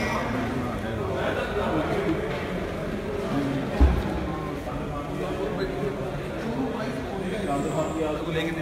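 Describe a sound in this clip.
A crowd of men talk and shout over one another close by, in a hall that echoes.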